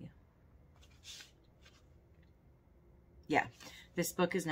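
Paper rustles in a woman's hands.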